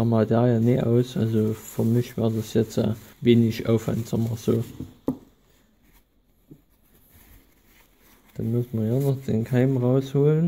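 A paper towel rustles as it wipes a small metal part.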